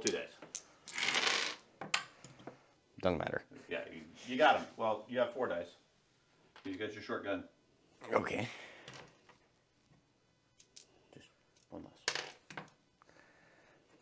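Dice tumble and clatter softly into a padded tray.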